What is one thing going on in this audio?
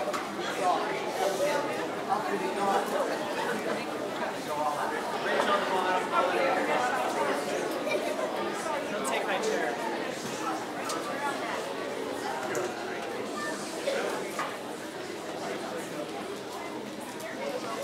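A large audience chatters and murmurs in an echoing hall.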